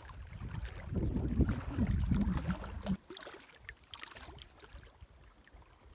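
Water laps against a rocky shore.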